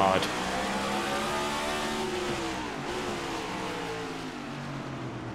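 Race car engines roar steadily at high speed.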